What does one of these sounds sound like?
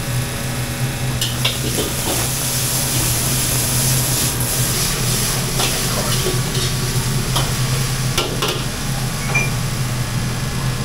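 Gas burners roar steadily.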